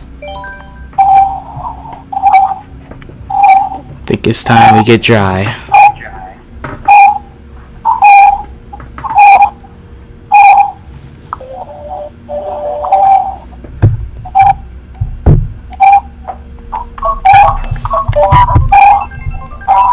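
Short electronic chimes play in an even, repeating tune.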